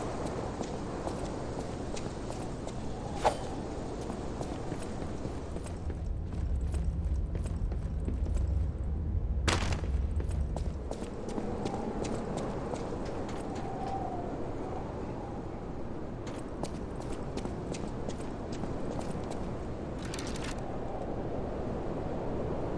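Footsteps tread quickly across a hard floor.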